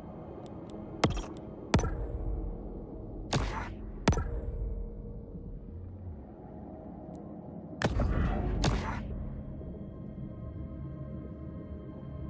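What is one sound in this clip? Menu clicks sound in short, sharp blips.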